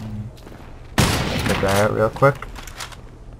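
A rifle fires a loud shot that echoes briefly.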